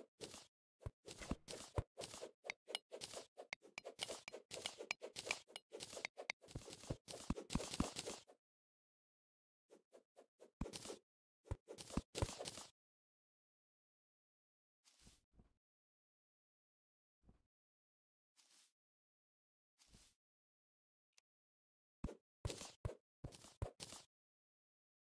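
A pickaxe chips at dirt and stone blocks in quick, repeated knocks.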